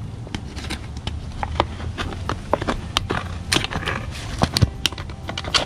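Scissors snip and crunch through a plastic bottle.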